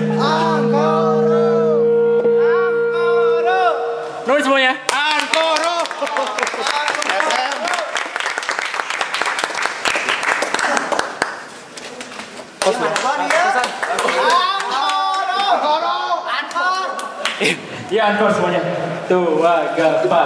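A crowd of young men shouts and cheers loudly.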